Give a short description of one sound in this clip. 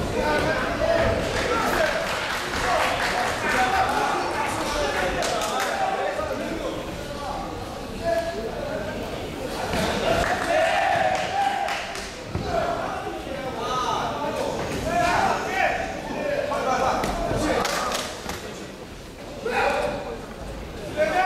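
Spectators and coaches shout encouragement in a large, echoing hall.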